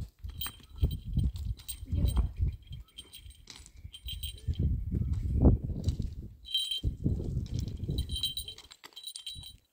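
Footsteps crunch on loose stones and gravel.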